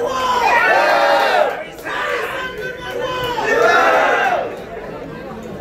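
A crowd of men chants a slogan in unison, echoing in a hall.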